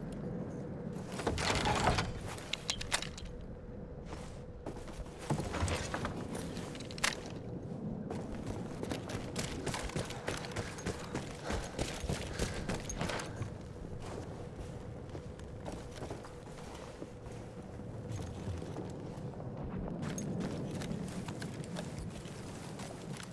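Footsteps thud on wooden floorboards and ground.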